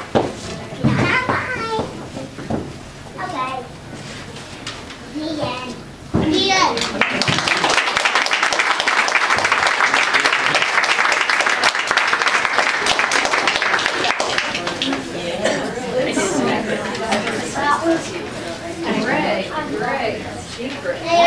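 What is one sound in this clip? Children speak and call out nearby in a room.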